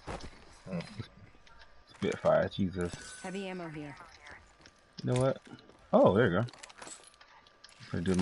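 Items are picked up with short clicks and chimes.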